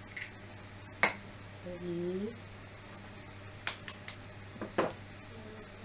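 An egg cracks with sharp taps against a bowl's rim.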